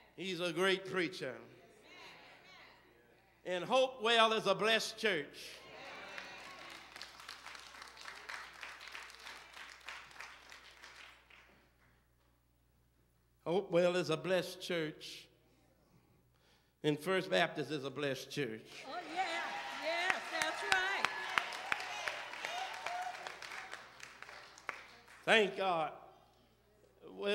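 A man preaches loudly into a microphone in bursts, his voice echoing in a large hall.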